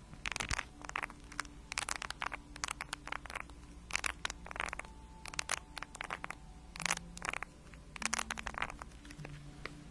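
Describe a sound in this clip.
Fingernails tap and scratch on a wooden spoon close to a microphone.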